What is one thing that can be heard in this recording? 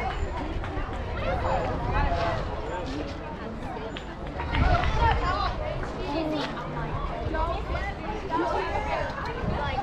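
Children call out and chatter across an open field.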